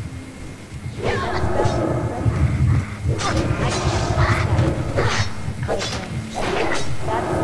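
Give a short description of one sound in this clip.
Blades clash and strike in a fight, with sharp hits.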